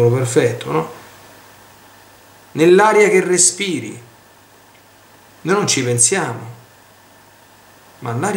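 A middle-aged man speaks calmly and slowly in short phrases, close to a microphone.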